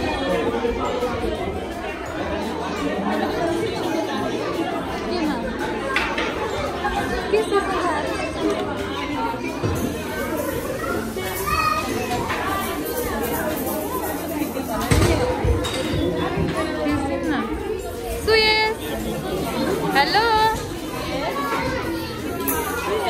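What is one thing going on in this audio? Many young children and adults chatter and babble.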